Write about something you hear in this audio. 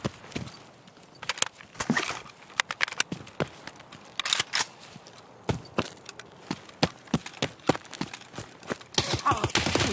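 Footsteps crunch quickly over ground and grass.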